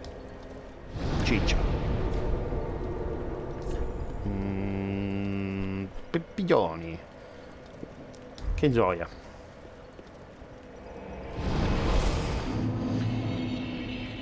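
A deep magical whoosh swells and fades away.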